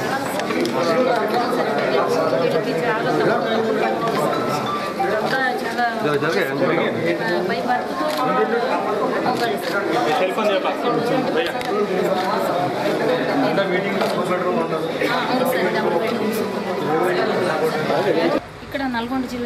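A crowd of men and women talk over one another close by.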